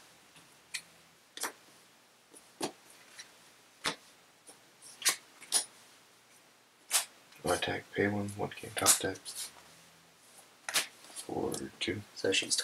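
Playing cards tap and slide onto a mat.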